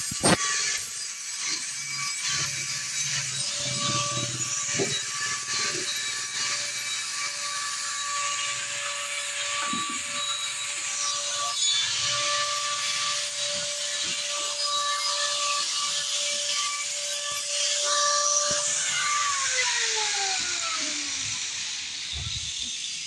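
An angle grinder whines and grinds against metal, then winds down.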